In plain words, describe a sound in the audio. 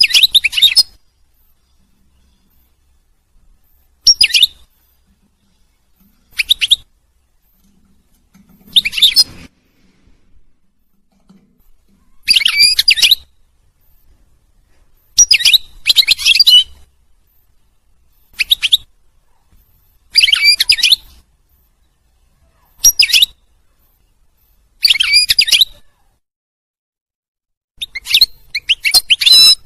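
A small bird sings close by in short bursts of twittering song.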